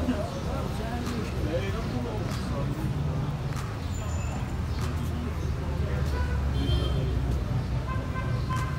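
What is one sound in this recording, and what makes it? Footsteps scuff along a paved sidewalk outdoors.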